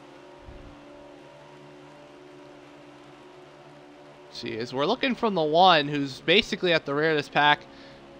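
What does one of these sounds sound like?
Race car engines drone steadily at high speed.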